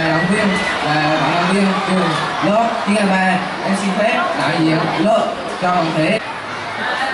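A teenage boy reads out through a microphone.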